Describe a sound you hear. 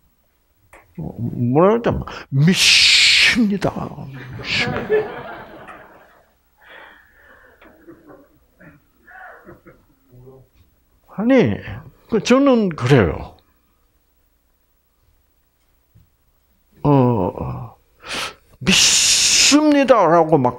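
An elderly man speaks with animation through a headset microphone.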